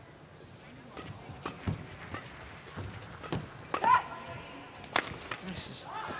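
Rackets smack a shuttlecock back and forth in a sharp rally.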